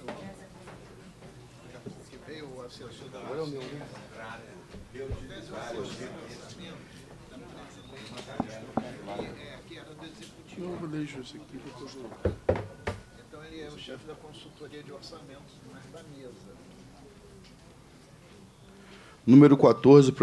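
Several men talk at a distance in a room.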